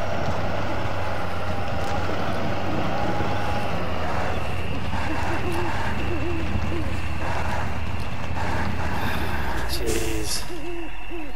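A heavy truck engine rumbles low and steadily, then cuts off.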